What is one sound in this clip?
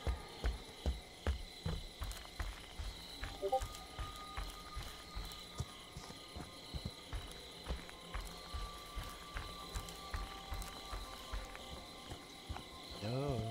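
Heavy footsteps fall at a steady pace on soft ground.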